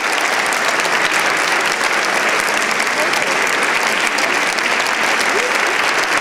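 A large audience applauds steadily in a big echoing hall.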